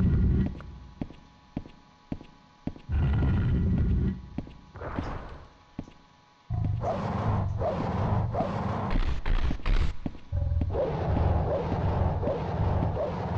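Footsteps tap on a stone floor in an echoing corridor.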